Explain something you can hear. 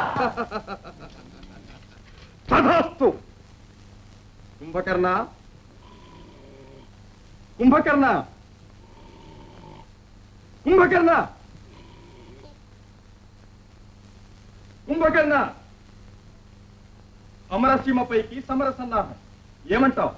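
A man speaks loudly and dramatically in short bursts with pauses.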